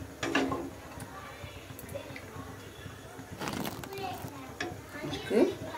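Oil pours from a spoon into a pan.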